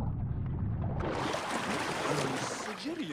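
Water splashes and sloshes loudly as a swimmer breaks the surface.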